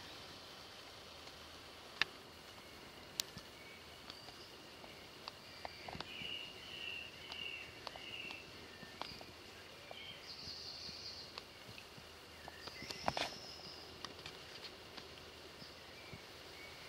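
A beaver swims through river water, towing a leafy branch with a soft swishing.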